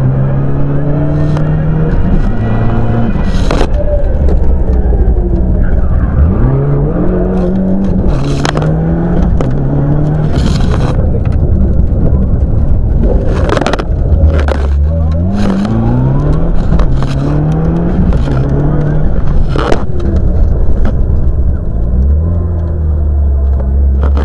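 A rally car engine roars loudly from inside the cabin, revving up and down through the gears.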